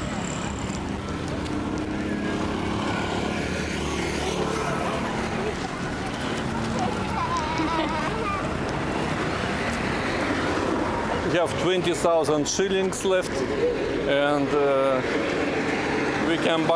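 Cars and buses drive past on a nearby road.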